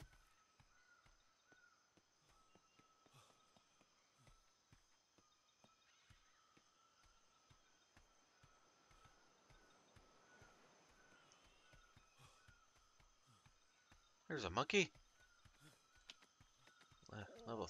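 Footsteps run quickly over soft sand.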